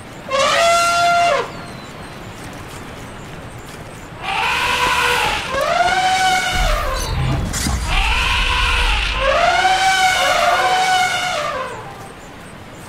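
A wolf howls loudly, again and again.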